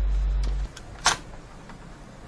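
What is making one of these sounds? A hard plastic part knocks once as hands handle it.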